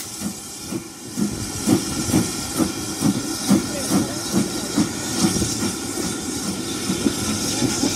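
Train wheels rumble and clack over the rails.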